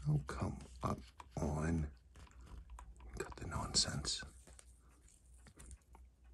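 A small tool clicks softly against a watch dial.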